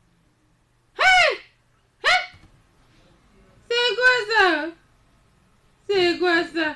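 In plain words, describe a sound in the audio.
A woman shouts loudly.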